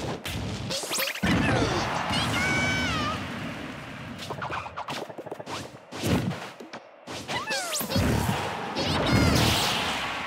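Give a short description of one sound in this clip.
Electric zaps and crackles burst out in short blasts.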